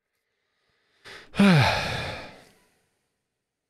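A video game plays a soft falling swoosh.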